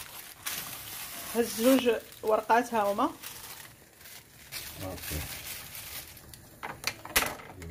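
Plastic wrapping crinkles and rustles under a hand.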